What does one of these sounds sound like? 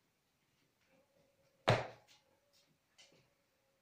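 Footsteps move away on a hard floor.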